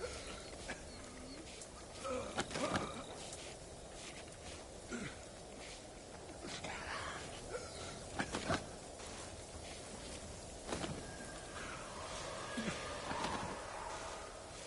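A body scrapes as it is dragged across the ground.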